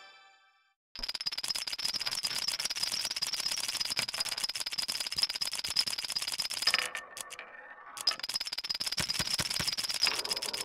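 Dominoes clatter rapidly as they topple one after another.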